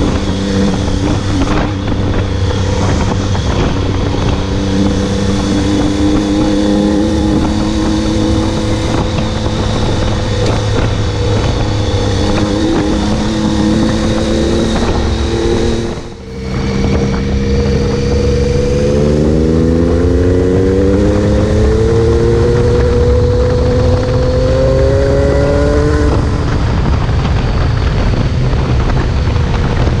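A motorcycle engine drones steadily and climbs in pitch as it speeds up.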